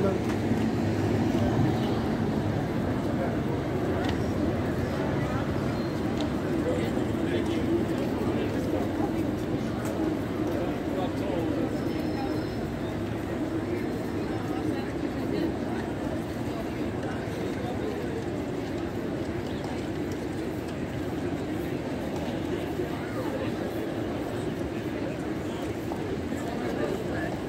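A busy street hums steadily with distant traffic.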